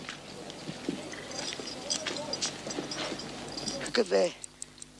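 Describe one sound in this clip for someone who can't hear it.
A crowd chatters and murmurs.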